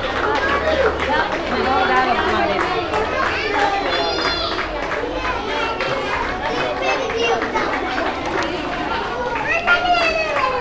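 Many young children chatter and shout in a large echoing hall.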